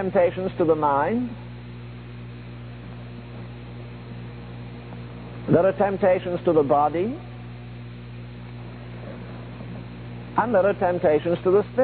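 An elderly man preaches with feeling, in short bursts with long pauses.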